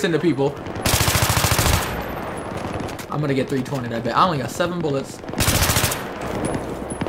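An assault rifle fires rapid bursts.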